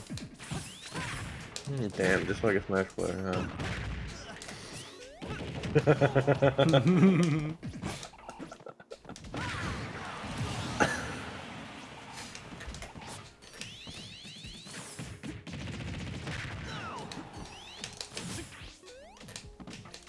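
Video game effects whoosh and hit.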